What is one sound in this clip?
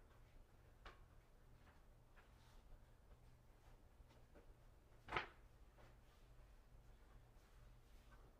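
Small objects tap and click on a table nearby.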